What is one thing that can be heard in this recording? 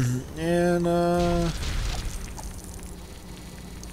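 Small plastic pieces clatter and snap together.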